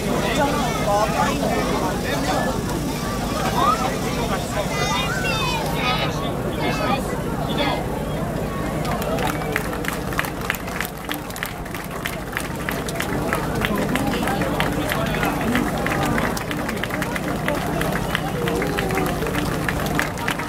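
A large crowd of men and women chatters outdoors all around.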